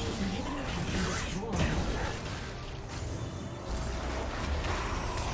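Magic blasts and weapon hits crackle and thump in a fast video game battle.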